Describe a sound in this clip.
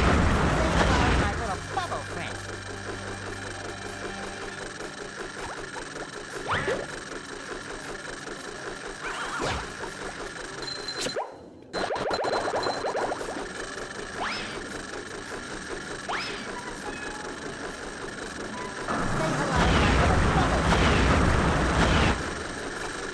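Bubbles rush and fizz loudly underwater.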